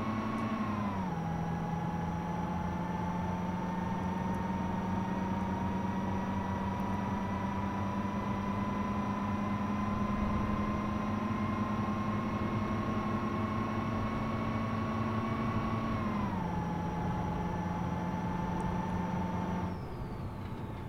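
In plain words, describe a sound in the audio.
A truck engine drones steadily and rises in pitch as it speeds up, dropping at each gear change.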